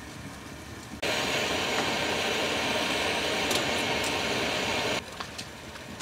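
Stew bubbles and simmers in a pot.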